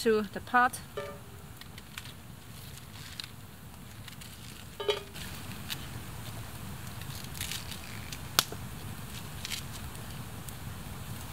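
A knife cuts through crisp green onions with short, sharp clicks.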